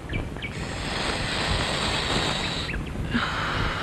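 A young man blows out a long puff of smoke.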